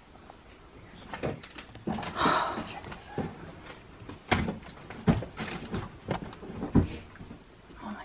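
Footsteps shuffle and thud on a hard floor nearby.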